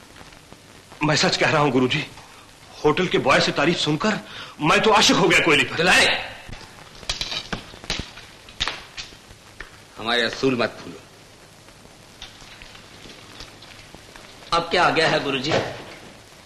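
A second man talks tensely.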